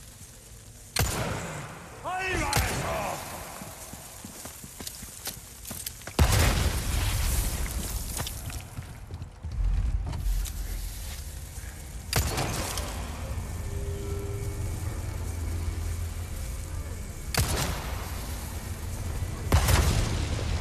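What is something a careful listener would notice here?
A handgun fires loud single shots that echo.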